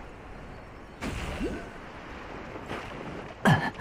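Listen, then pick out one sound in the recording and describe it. Water splashes as something lands in it.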